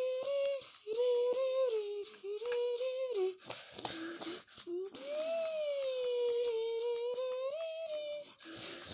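A video game's music plays a bright, wavering melody.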